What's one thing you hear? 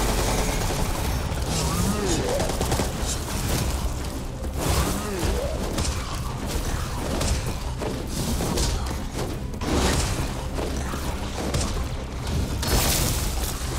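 Heavy blows thud and splatter in a close fight.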